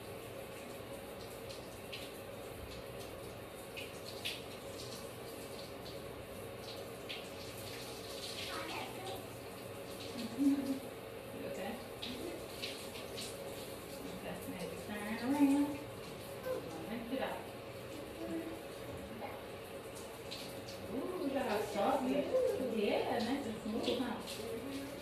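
Hands squish and rub lather through wet hair.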